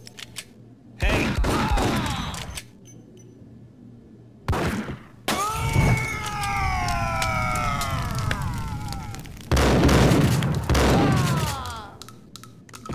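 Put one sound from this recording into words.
Gunshots boom loudly with echoing rumble.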